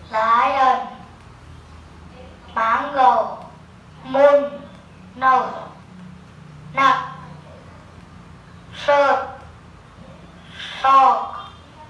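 A woman speaks single words slowly and clearly, close by, with short pauses between them.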